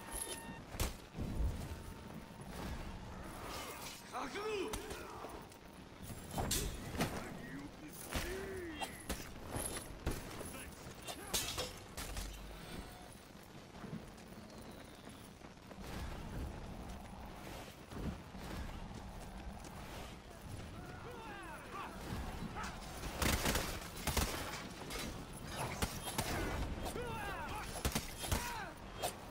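Swords clash and strike again and again in a fierce fight.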